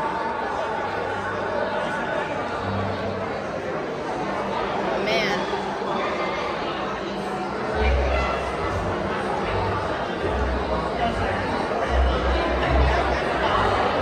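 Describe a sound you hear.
A crowd murmurs indistinctly in a large echoing hall.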